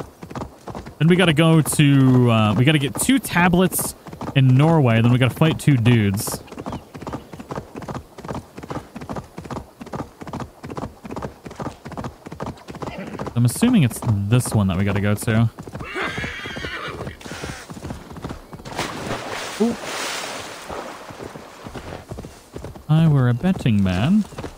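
A horse's hooves thud steadily at a gallop.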